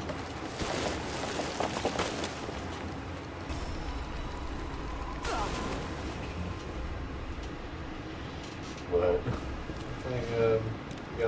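A sled scrapes and hisses over snow at speed.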